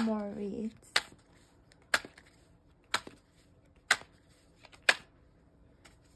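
Playing cards are shuffled with sharp, regular taps.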